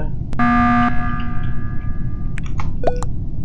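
A loud alarm blares and rings out.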